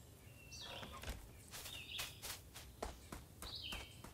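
Small footsteps patter on grass.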